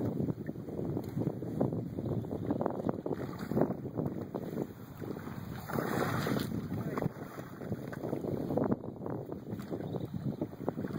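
Oars dip and splash in lake water.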